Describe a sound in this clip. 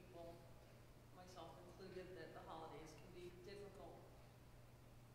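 A woman speaks calmly into a microphone, heard through a loudspeaker in an echoing room.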